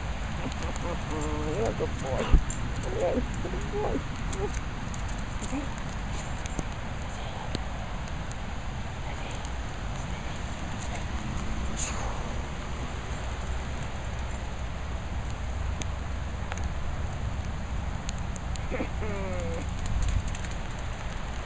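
A dog runs across wet grass with quick, soft footfalls.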